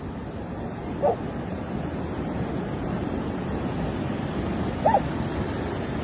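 A dog gives a short yelp.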